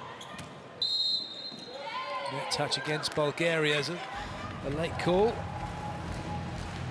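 A referee blows a shrill whistle.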